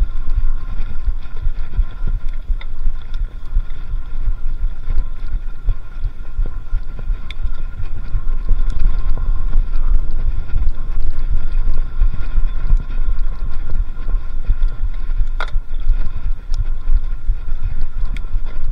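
Wind rumbles heavily against a microphone.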